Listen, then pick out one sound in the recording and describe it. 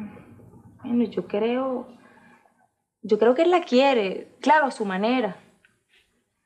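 A young woman speaks emotionally, close by.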